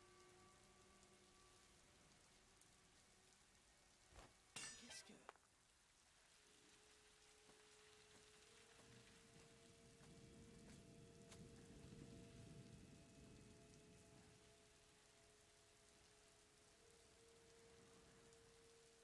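A fire crackles and burns nearby.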